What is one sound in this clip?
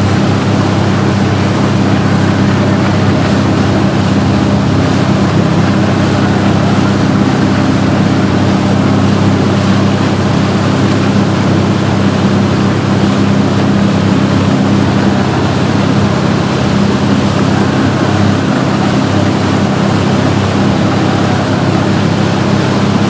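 A boat engine drones steadily at close range.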